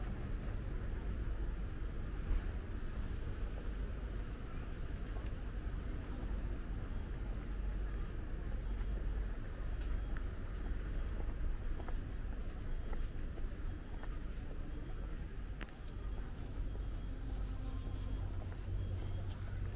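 Footsteps scuff on pavement close by.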